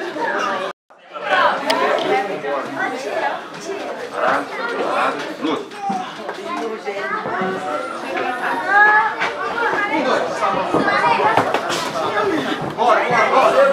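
A crowd cheers and shouts around a ring.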